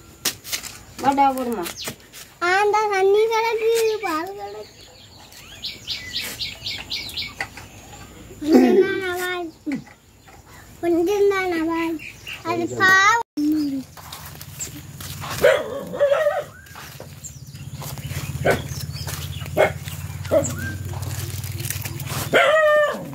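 A little girl talks and calls out close by, in short bursts.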